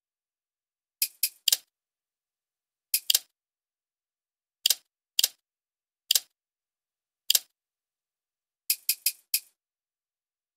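Menu clicks sound in short sharp blips.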